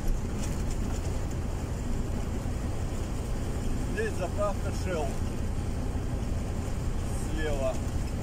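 A vehicle's engine drones steadily as it drives along a road.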